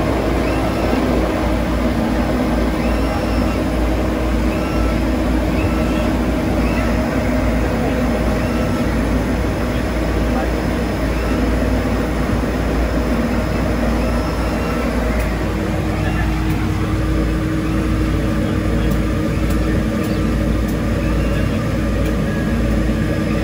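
Propeller engines drone loudly and steadily from close by.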